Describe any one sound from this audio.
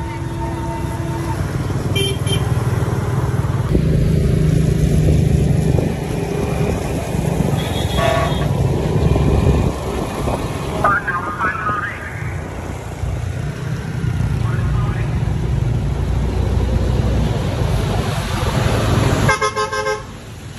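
Motorbike engines hum steadily close by on a wet road.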